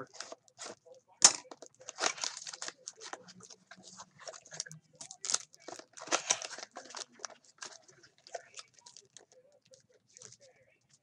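Hands open a cardboard box with rustling and scraping.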